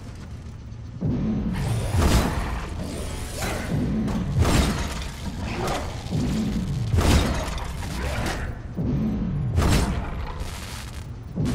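Sword blows strike with heavy, booming thuds.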